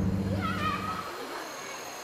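A river rushes over rocks.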